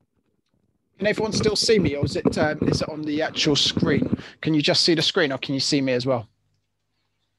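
A man speaks calmly into a microphone over an online call.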